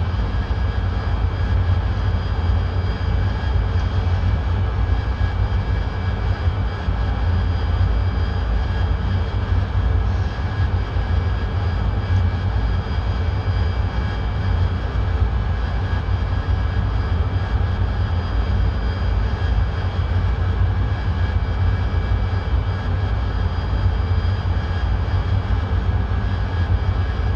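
A jet engine roars steadily inside the cockpit.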